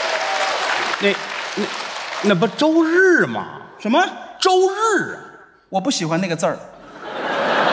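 A second middle-aged man answers into a microphone.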